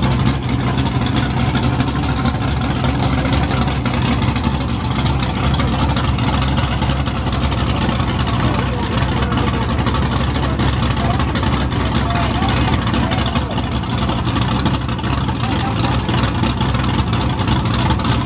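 A powerful car engine idles loudly with a deep, lumpy rumble nearby.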